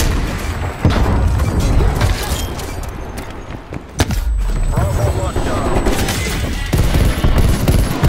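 Gunfire bursts out in sharp cracks.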